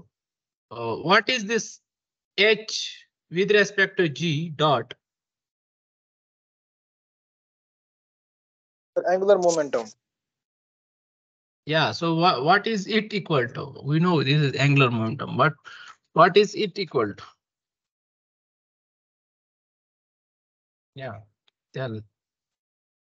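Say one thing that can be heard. A young man speaks calmly over an online call, in bursts with pauses.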